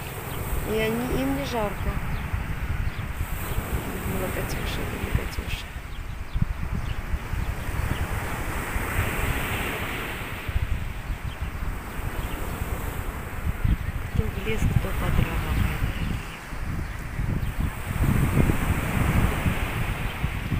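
Wind gusts steadily outdoors, buffeting the microphone.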